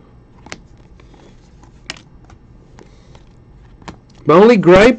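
Trading cards rustle and flick softly between fingers.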